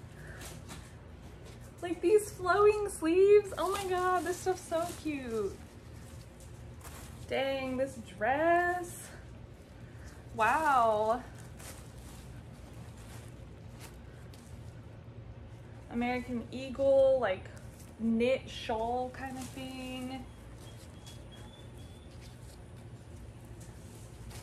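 Fabric rustles as clothes are shaken out.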